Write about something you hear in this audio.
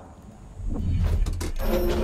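A metal door handle clanks as it turns.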